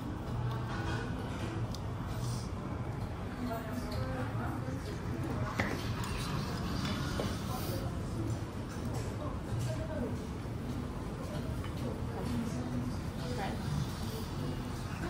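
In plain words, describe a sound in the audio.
Cutlery clinks against bowls and plates.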